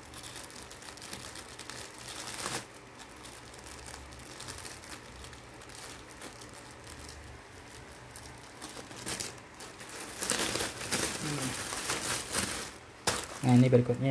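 Plastic wrap crinkles and rustles under hands.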